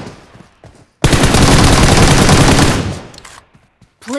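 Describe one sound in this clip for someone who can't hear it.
An automatic rifle fires a rapid burst of shots.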